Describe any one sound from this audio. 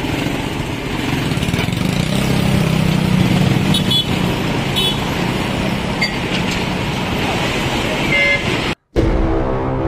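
A diesel dump truck engine idles close by.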